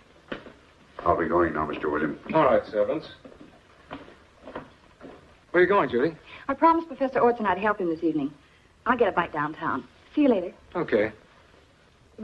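A young woman speaks lively and warmly, close by.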